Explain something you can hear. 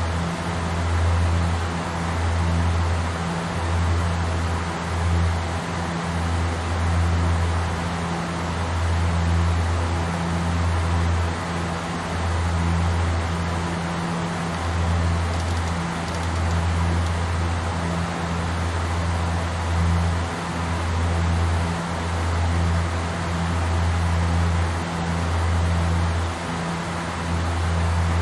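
Aircraft engines drone steadily with a low, pulsing hum.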